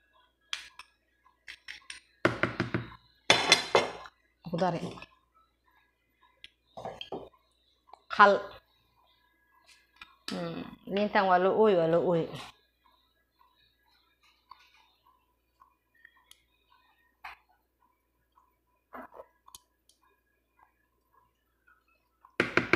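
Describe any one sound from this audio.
A metal spoon clinks and scrapes against a bowl.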